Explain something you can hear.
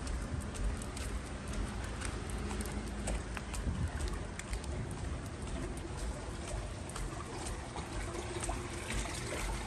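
A small dog's claws tap on wet stone paving as it trots.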